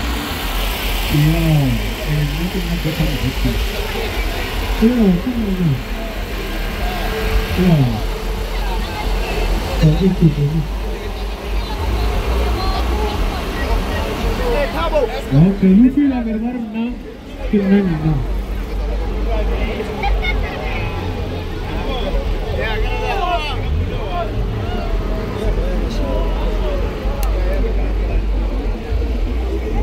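A crowd of young men chatter and call out nearby outdoors.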